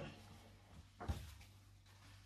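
An iron is set down with a soft thud.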